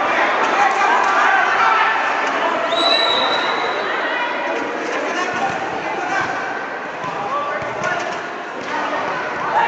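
A crowd of young women chatters and calls out in a large echoing hall.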